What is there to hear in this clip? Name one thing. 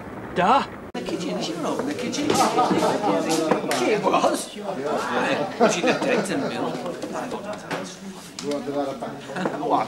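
A crowd of men and women chatter and murmur in a small room.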